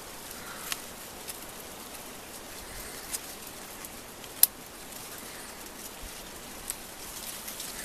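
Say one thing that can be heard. Leaves and stems drop into a wicker basket with soft crackles.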